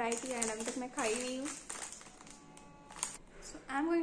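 Wrapper plastic crinkles.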